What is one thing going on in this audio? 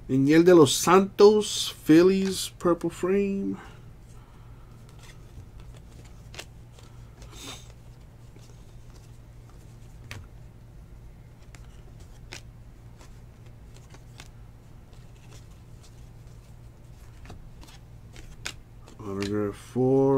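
Trading cards flick and rustle softly as they are shuffled by hand.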